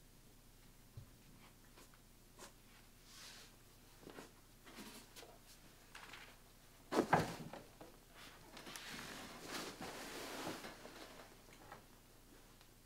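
Clothing rustles close by as a person shifts and moves.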